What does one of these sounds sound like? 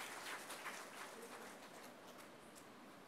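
An audience claps softly.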